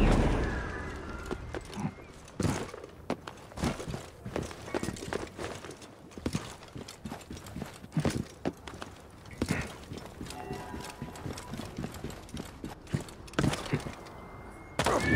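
Footsteps crunch quickly on sand and rock.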